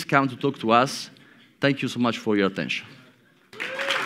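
A young man speaks calmly through a microphone in a large room.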